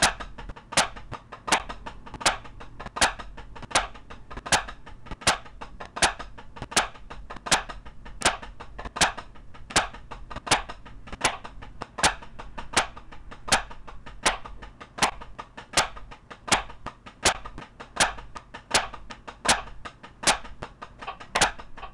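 Drumsticks tap quick, rapid patterns on a practice pad.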